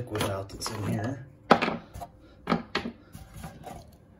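A plastic cap is unscrewed and clicks off.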